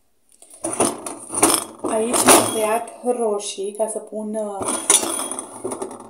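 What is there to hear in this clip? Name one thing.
A wooden board knocks against a table.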